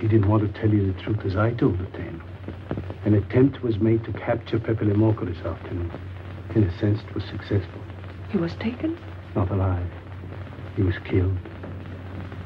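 A man speaks quietly and intently, close by.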